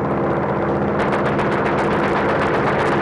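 A mounted machine gun fires in rapid bursts.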